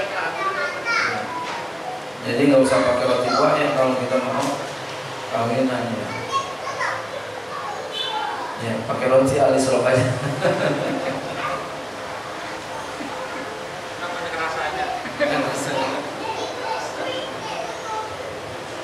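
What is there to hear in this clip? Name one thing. A middle-aged man speaks with animation into a microphone, in a slightly echoing room.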